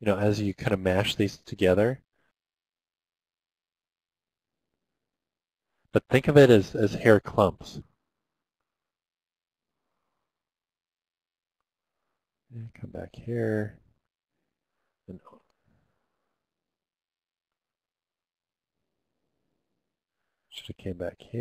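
A middle-aged man talks calmly through a headset microphone, in short bursts with pauses.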